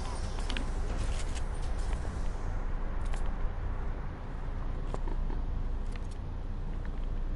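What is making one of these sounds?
Footsteps tap quickly on a hard floor.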